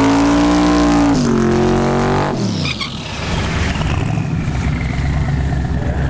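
Tyres screech and spin in a burnout.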